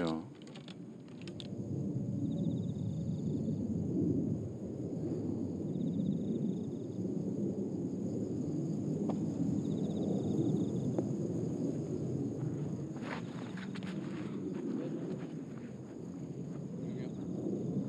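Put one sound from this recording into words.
A golf club strikes a ball with a soft click.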